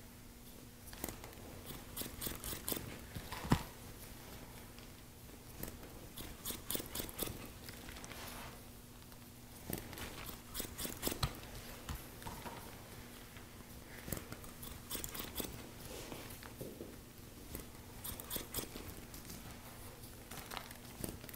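Scissors snip hair in quick, crisp bursts close up.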